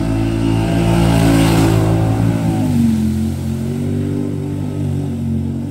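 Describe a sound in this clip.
Water splashes and sprays hard as a vehicle drives through it.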